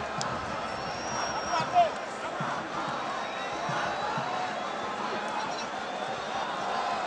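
A large crowd murmurs and shouts in an open stadium.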